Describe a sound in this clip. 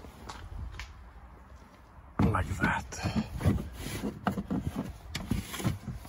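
A plastic crate scrapes and knocks as it slides into a car boot.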